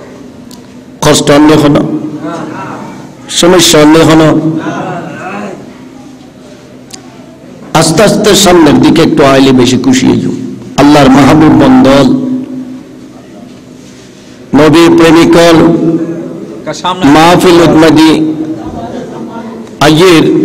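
A man preaches loudly and passionately into a microphone, his voice echoing through loudspeakers.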